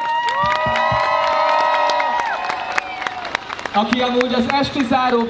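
Hands clap in a crowd.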